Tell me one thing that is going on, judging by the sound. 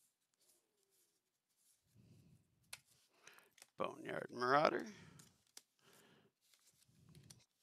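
Playing cards slide and tap against each other.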